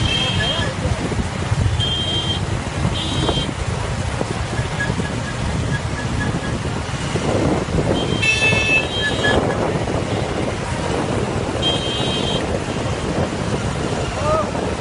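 Traffic rumbles steadily on a busy road outdoors.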